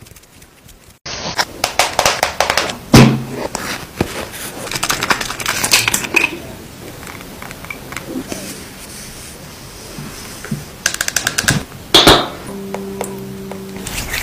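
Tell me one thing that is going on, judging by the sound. Long fingernails tap and click on a plastic container close to a microphone.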